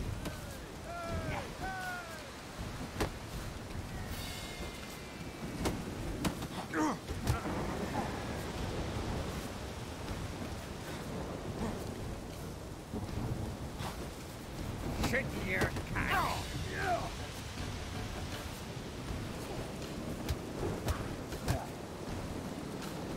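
Fists thump and smack in a brawl.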